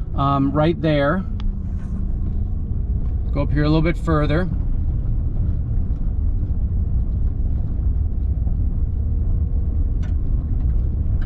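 A vehicle engine rumbles low and steady as the vehicle drives.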